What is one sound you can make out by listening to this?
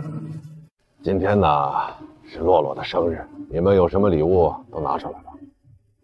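A man speaks with animation up close.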